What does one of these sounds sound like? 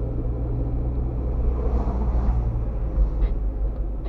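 A truck passes by in the other direction.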